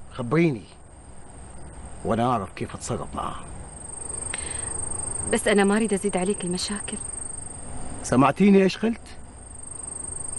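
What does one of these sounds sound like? A middle-aged man speaks gruffly.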